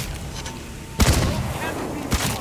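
A fiery explosion bursts with a roar.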